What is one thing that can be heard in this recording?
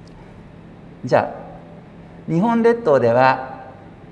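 A man speaks calmly into a microphone over loudspeakers in a large room.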